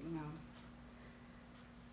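A woman laughs softly close by.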